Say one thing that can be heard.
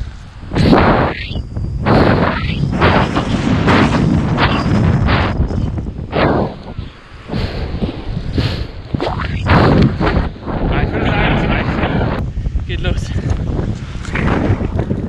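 Strong wind buffets and roars against a close microphone.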